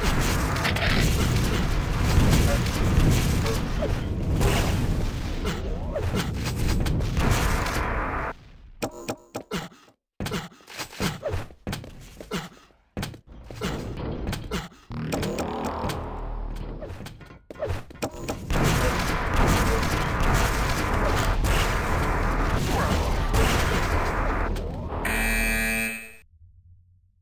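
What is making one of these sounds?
Gunfire blasts and energy weapons crackle in a fast game fight.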